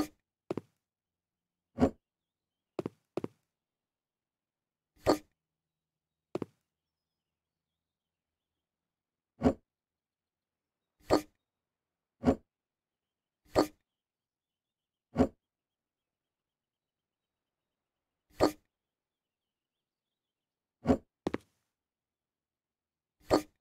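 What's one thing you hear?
Short soft thuds of furniture being picked up and set down sound at irregular intervals.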